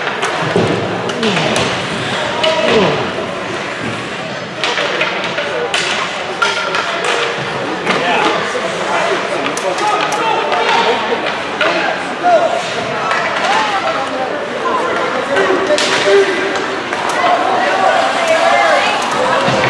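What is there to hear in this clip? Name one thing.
Hockey sticks click against the puck and each other.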